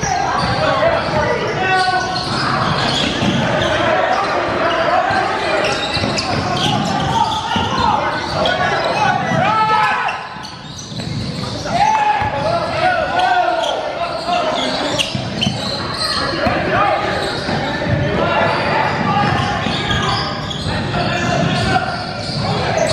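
Spectators and players shout and cheer in an echoing gym.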